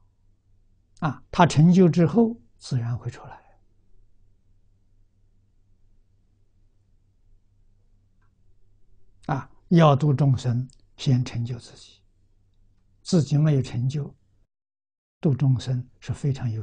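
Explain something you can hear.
An elderly man speaks calmly and slowly into a close microphone, with long pauses.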